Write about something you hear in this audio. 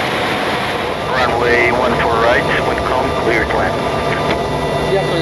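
A man speaks calmly over a radio headset.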